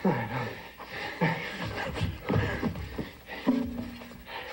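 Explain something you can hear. Shoes squeak and thump on a floor.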